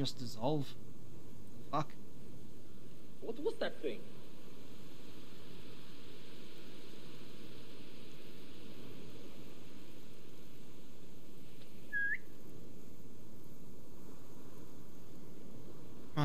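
Tall grass rustles softly as someone creeps through it.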